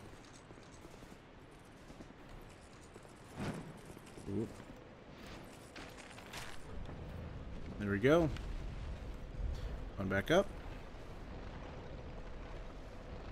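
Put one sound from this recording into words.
Armored footsteps clank on stone.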